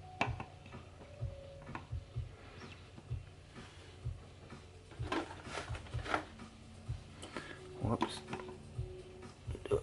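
Plastic trays knock and rattle as they are handled.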